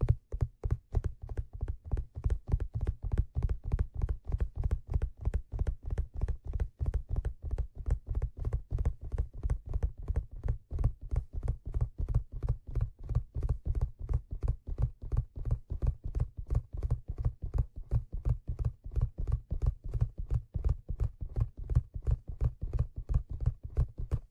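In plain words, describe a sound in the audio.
Fingers tap rapidly and steadily on a leather hat close to a microphone.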